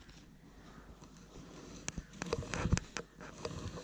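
Hands scoop and rustle through loose sand.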